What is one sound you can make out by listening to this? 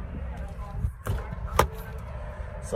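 A car door unlatches with a click and swings open.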